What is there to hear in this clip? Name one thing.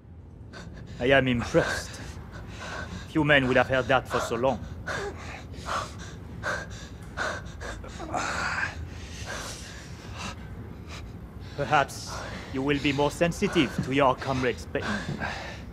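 A man speaks calmly and coldly nearby.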